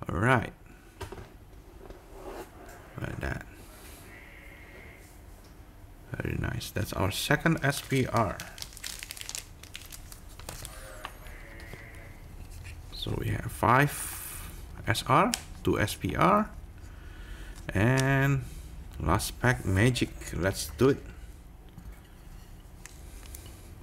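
Cards rustle and click softly between fingers.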